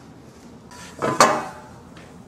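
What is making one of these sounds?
A glass bottle clinks down on a glass table.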